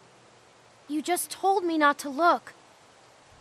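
A young girl answers in a tense, sharp voice.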